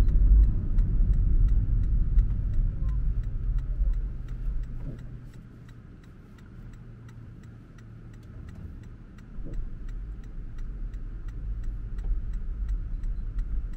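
A car's engine and tyres rumble low on the road.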